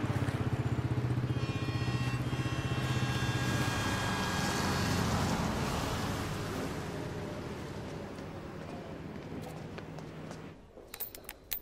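A motorcycle engine idles and putters nearby.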